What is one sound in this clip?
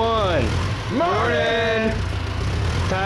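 Another man calls back from a forklift.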